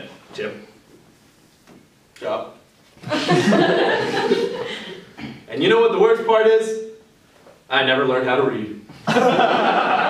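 Two young men talk and banter with each other nearby.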